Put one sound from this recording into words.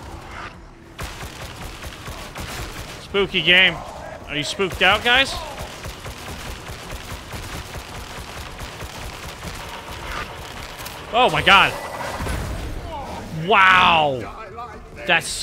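Gunfire rattles rapidly, close by.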